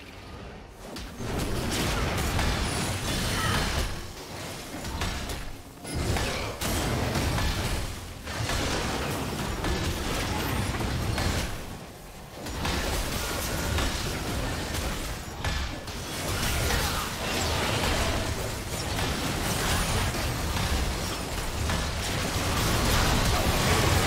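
Game combat effects clash, whoosh and crackle in quick bursts.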